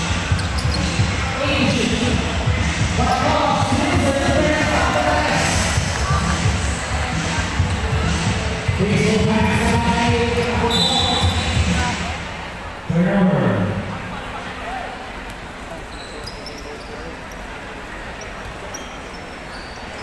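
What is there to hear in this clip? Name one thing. A large crowd cheers and chatters loudly in a big echoing arena.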